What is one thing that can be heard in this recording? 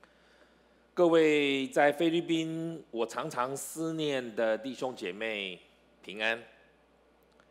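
An older man speaks calmly through a microphone.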